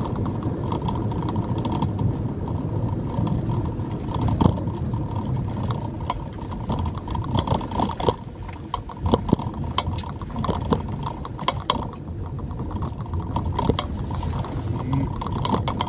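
Rain patters on a windshield.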